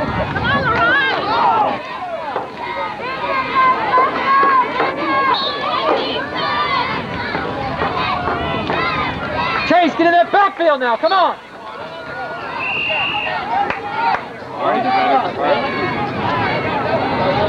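Young boys shout and cheer excitedly.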